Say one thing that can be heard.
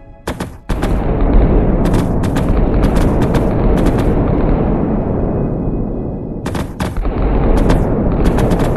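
Sharp blasts crackle again and again.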